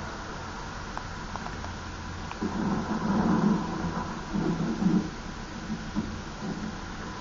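Rapid gunfire rattles, muffled through a television speaker.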